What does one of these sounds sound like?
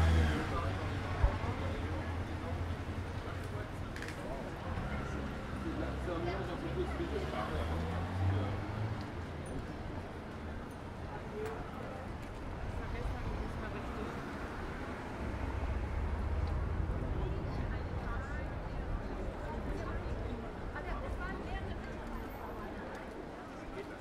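Voices of passers-by chatter indistinctly nearby.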